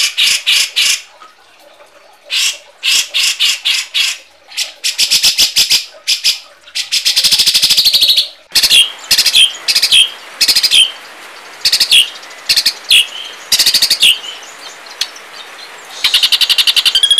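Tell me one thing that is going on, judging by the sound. Birds give harsh, rapid chattering calls close by.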